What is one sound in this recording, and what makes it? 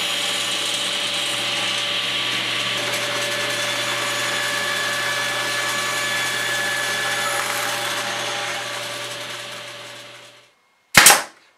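A table saw whines steadily as it cuts through wood, then winds down.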